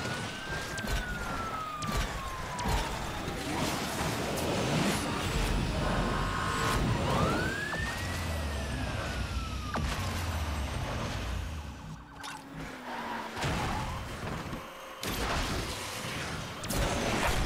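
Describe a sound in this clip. A racing car engine roars at high speed in a video game.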